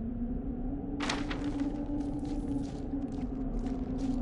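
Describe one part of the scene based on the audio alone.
Footsteps crunch on sand and gravel.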